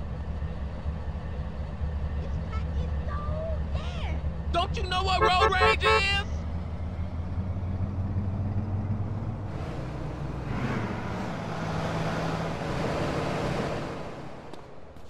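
Car engines hum steadily as traffic drives past nearby.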